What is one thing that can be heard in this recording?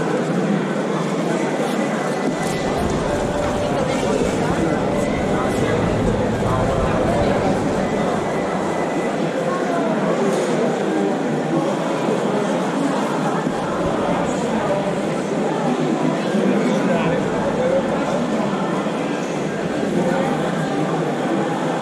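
A knife scrapes and cuts through crispy roast meat.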